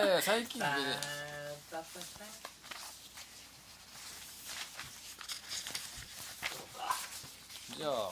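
Paper sheets rustle and crinkle.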